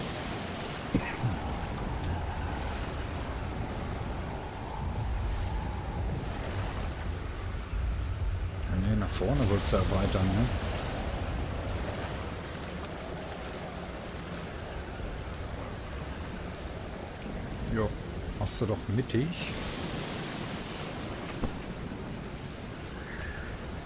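Ocean water laps and splashes steadily.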